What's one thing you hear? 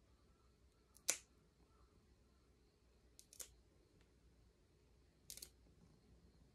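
A nail clipper snips a cat's claws with sharp clicks.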